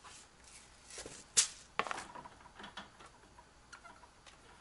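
A plastic filter cartridge knocks and clatters as it is handled.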